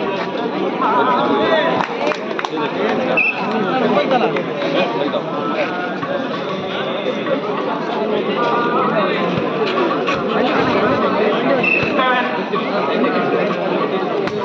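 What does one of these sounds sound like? A crowd of men chatters and shouts outdoors.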